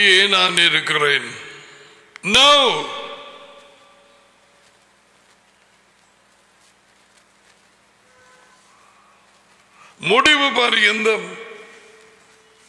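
An elderly man speaks forcefully into a microphone, pausing between phrases.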